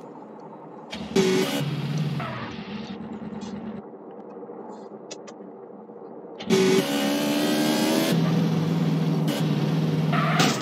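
A motorcycle engine starts and revs loudly.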